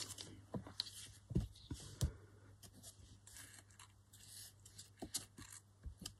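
A glue stick rubs over paper.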